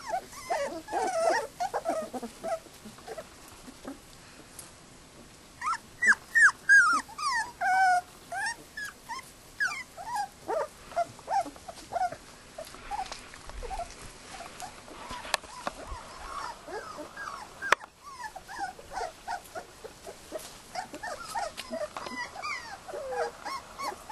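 Puppies whine and yelp in high, squeaky voices.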